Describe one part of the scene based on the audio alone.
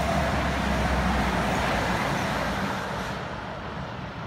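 A freight train rumbles along the tracks.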